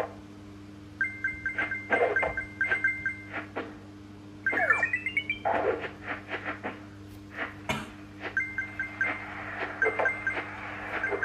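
Coins chime in quick bright runs as they are picked up in a game.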